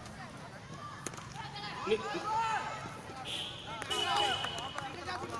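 Young players call out in the distance outdoors.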